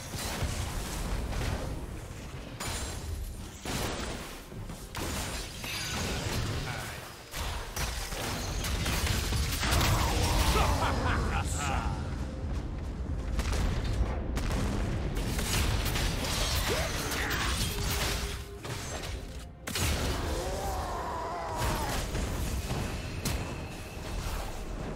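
Magic spells and weapon blows crackle and boom in a video game battle.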